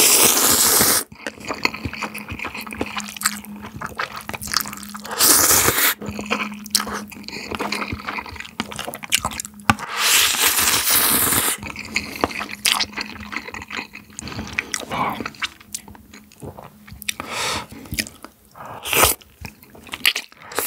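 A young man chews food with wet smacking sounds.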